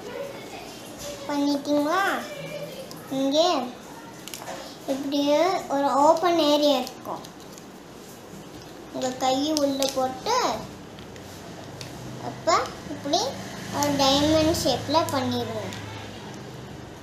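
A young boy speaks clearly and close by, in short bursts.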